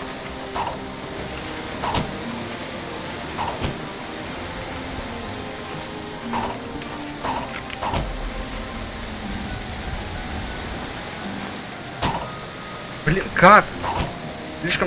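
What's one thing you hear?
A waterfall splashes steadily.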